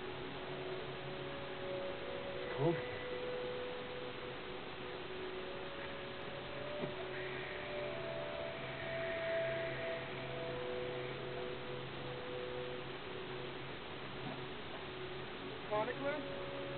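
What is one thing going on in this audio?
Game music plays softly with steady, sustained tones through a television.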